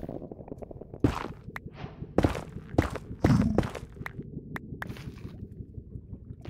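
Molten lava bubbles and pops.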